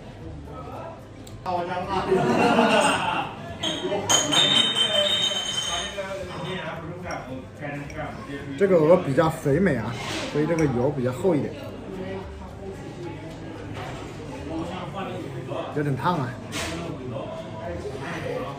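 A man slurps soup from a bowl.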